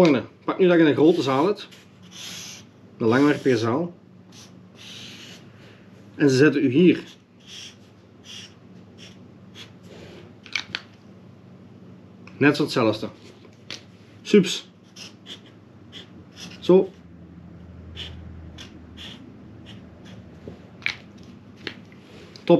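A felt-tip marker squeaks and scratches across card.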